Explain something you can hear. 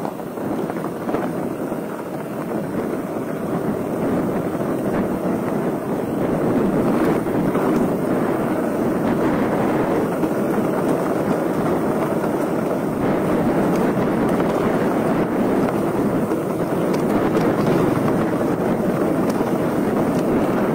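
Bicycle tyres crunch and rattle over loose gravel.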